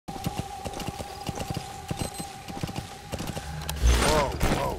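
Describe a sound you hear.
A horse's hooves thud steadily at a gallop.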